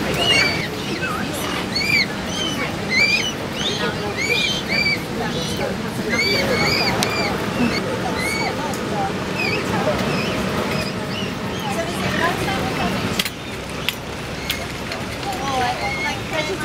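Men and women chat in a crowd outdoors.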